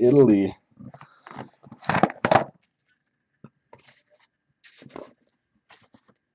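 Cardboard boxes rustle and bump as they are handled.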